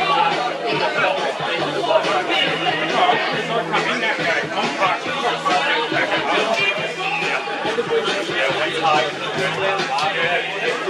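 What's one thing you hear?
A crowd of spectators chatters and calls out in the open air.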